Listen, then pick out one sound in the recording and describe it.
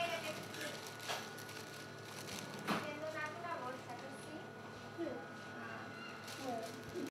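Women talk calmly nearby.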